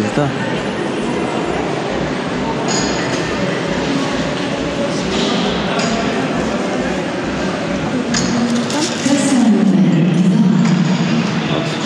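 Footsteps tap on a stone floor in a large echoing hall.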